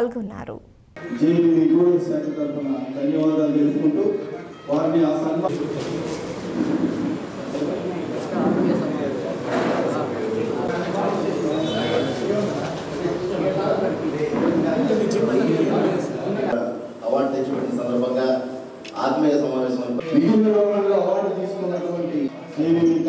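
A man speaks through a loudspeaker microphone in a room.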